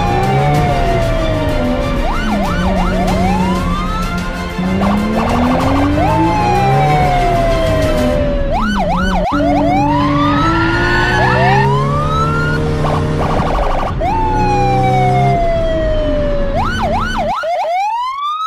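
Race car engines roar and rev.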